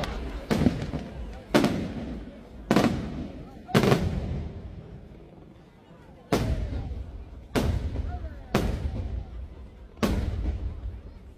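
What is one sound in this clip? Fireworks burst with loud booming bangs that echo away.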